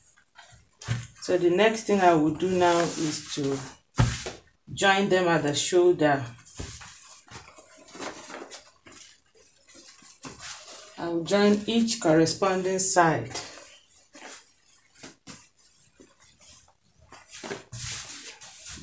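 Fabric rustles and crinkles as it is handled and folded.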